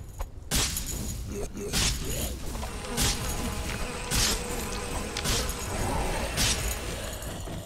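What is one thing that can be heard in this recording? Weapons strike and clash in a fight, with sharp impact bursts.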